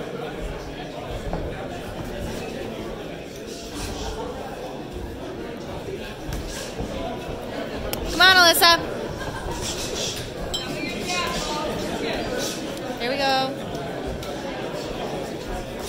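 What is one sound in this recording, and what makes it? Boxing gloves thud against each other and padding.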